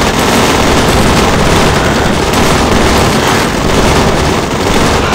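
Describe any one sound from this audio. A heavy vehicle engine rumbles.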